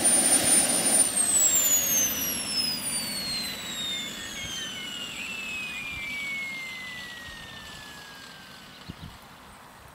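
A small model helicopter engine winds down, its pitch falling slowly.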